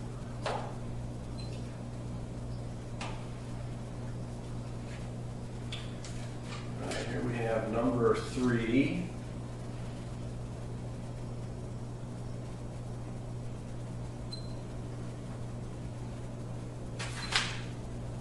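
Small clicks and taps come from a light fixture being handled.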